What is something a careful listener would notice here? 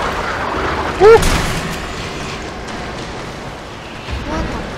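A handgun fires loud shots.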